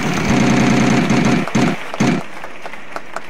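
A prize wheel clicks rapidly as it spins, then slows to a stop.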